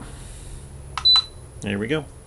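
Buttons click under a finger.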